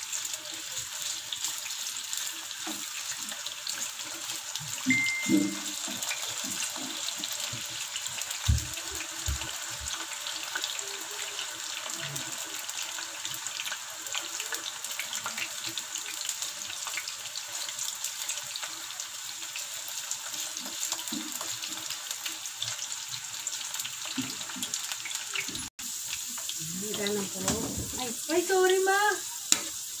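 Food sizzles steadily in hot oil.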